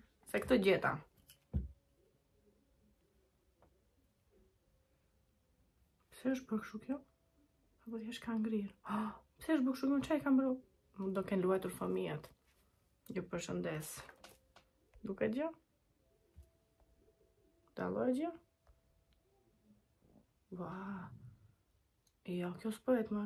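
A young woman speaks softly and calmly, close to a microphone.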